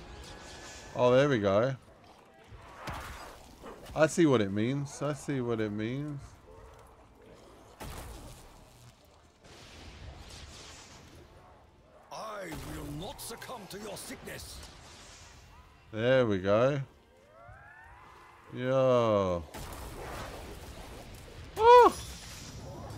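A magic staff fires crackling energy blasts.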